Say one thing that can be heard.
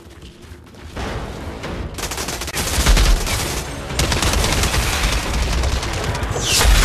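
Gunfire and explosions boom loudly.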